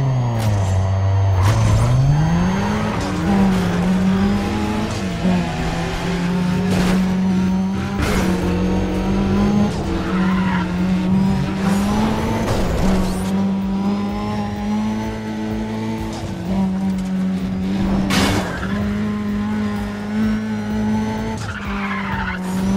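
A racing car engine roars loudly, its pitch rising and falling through the gears.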